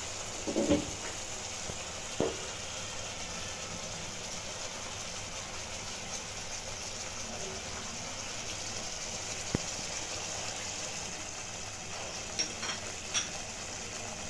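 A wooden spatula scrapes and taps against a pan.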